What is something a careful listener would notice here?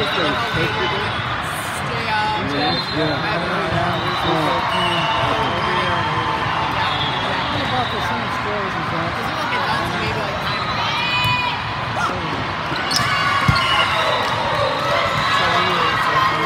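A large crowd chatters and cheers, echoing through a big hall.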